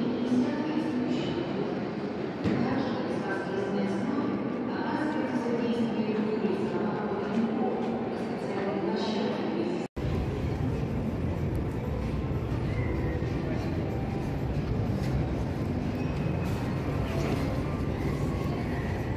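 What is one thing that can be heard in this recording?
Many voices murmur at a distance in a large echoing hall.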